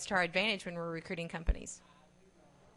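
A middle-aged woman speaks firmly into a close microphone.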